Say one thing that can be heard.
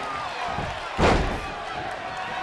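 A body thuds heavily onto a wrestling mat.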